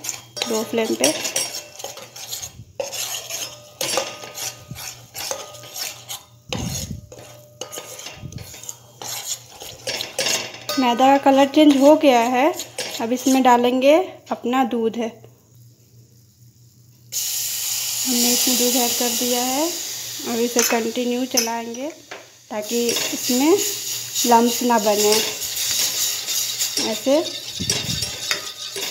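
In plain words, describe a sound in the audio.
A metal spoon scrapes and clinks against a metal bowl while stirring water.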